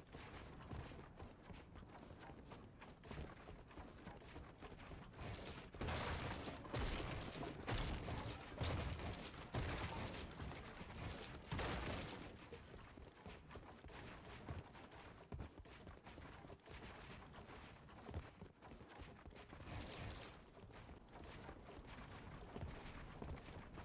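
Footsteps run across wooden floors.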